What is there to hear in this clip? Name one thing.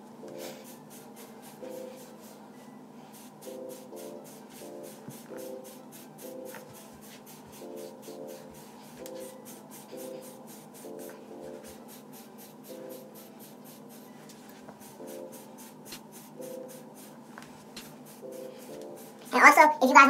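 A brush scrapes through short hair.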